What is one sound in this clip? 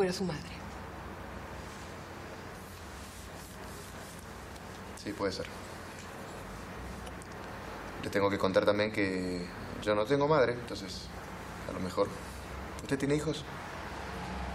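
A man speaks quietly and earnestly.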